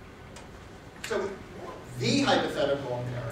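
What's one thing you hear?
An older man speaks calmly to a room, heard from a distance.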